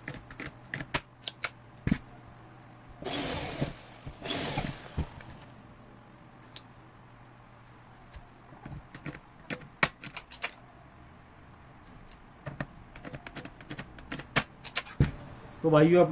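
Metal parts click and clatter.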